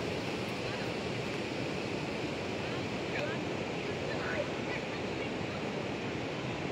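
Water flows gently over rocks outdoors.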